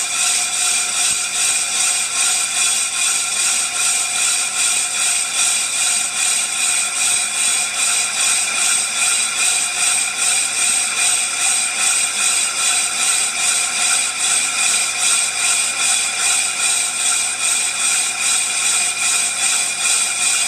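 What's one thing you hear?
A machine whirs steadily as a large wheel spins fast, with a pulsing hum.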